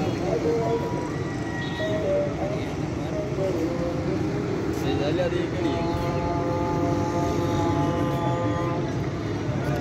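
Vehicle horns honk in the streets below.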